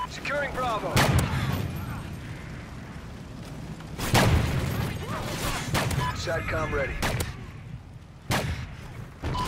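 A sniper rifle fires loud, booming shots.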